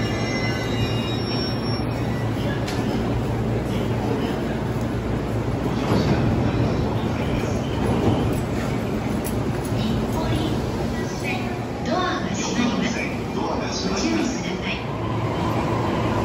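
A crowd of people murmurs nearby in a large echoing station.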